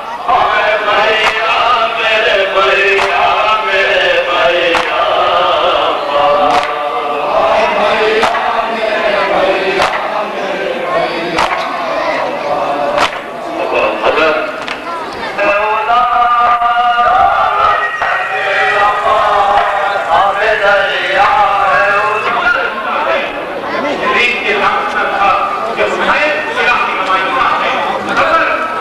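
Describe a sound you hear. A crowd of men chants along together.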